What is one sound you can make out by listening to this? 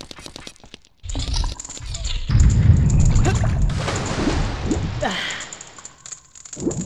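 A body splashes loudly into water.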